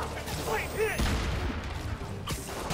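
A blast bursts with a heavy thud.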